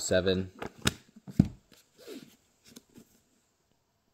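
A hardback book thumps and knocks as it is picked up and handled.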